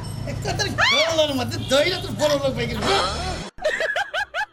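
A woman shouts loudly in distress close by.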